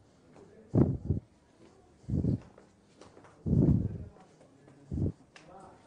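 Footsteps thud heavily down a staircase.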